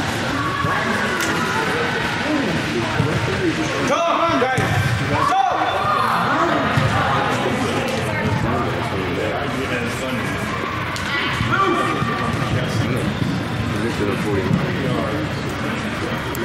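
Young players shout and call out across a large echoing hall.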